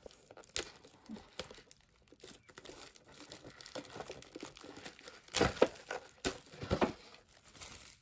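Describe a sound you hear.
Plastic film crinkles and rustles as hands peel it off a paper cup.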